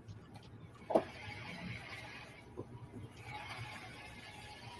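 A vehicle drives along a road with a low rumble.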